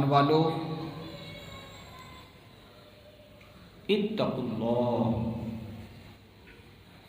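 A man speaks calmly into a microphone, heard through a loudspeaker.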